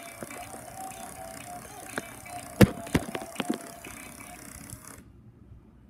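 A small toy motor whirs steadily.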